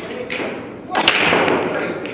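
A billiard cue strikes a ball with a sharp crack.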